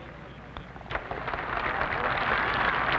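A crowd cheers and applauds in the distance.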